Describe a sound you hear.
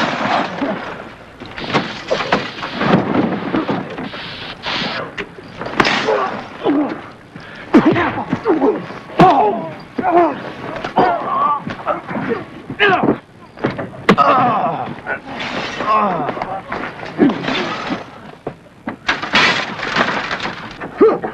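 Young men shout during a scuffle.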